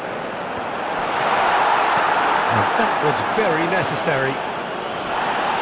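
A large crowd cheers loudly, rising suddenly and then easing off.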